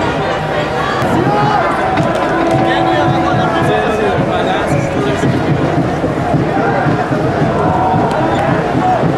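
Young men and women talk loudly close by.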